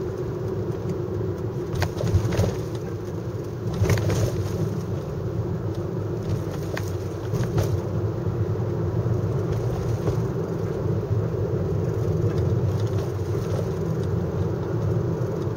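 Tyres roll on an asphalt road.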